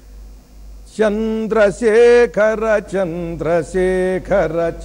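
An elderly man chants in a steady singing voice through a microphone.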